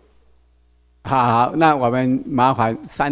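An elderly man speaks into a microphone over a loudspeaker.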